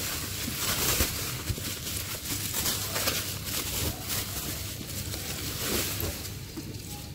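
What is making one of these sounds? Plastic bubble wrap crinkles and rustles as it is handled.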